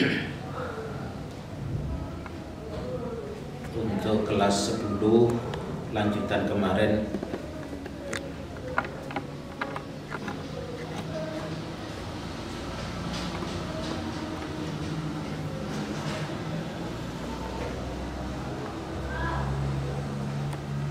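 An elderly man speaks calmly into a microphone, reading aloud.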